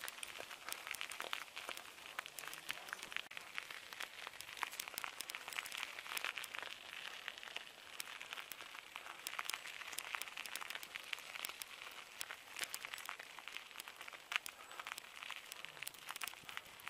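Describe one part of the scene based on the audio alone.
Footsteps crunch on a gravel path outdoors.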